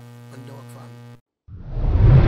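A man speaks into a microphone up close.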